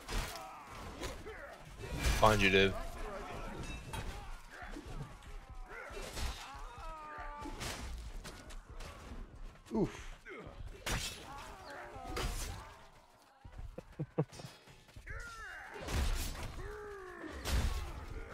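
Metal weapons clash and strike in sword fighting.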